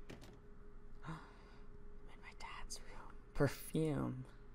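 A door latch clicks and a door opens.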